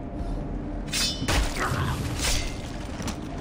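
A quick scuffle ends with a heavy thud.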